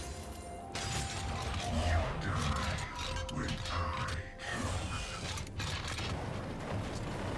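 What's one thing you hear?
Video game combat sounds clash and thud rapidly.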